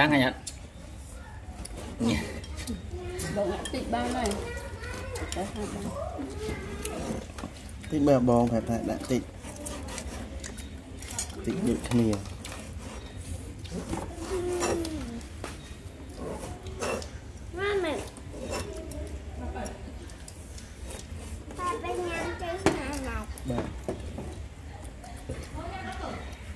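Children chatter and laugh nearby.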